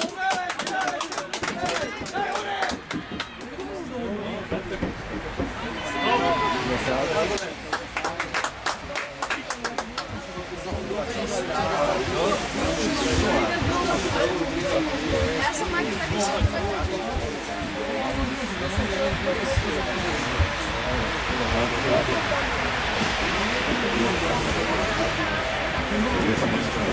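Young players shout and call to each other across an open outdoor pitch.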